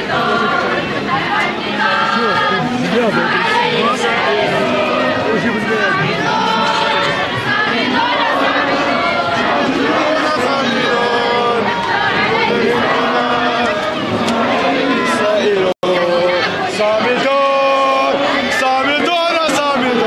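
A dense crowd murmurs and shouts all around, close by.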